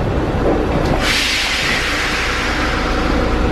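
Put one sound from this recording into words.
Train doors open with a loud hiss of air.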